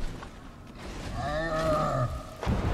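A large beast roars loudly.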